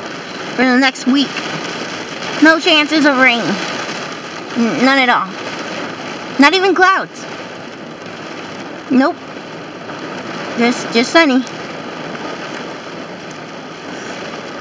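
Heavy rain pours down on pavement outdoors.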